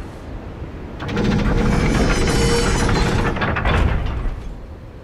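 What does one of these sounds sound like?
A body in armour rolls and clatters across stone.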